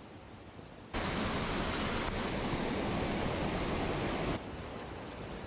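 Water rushes loudly over a weir.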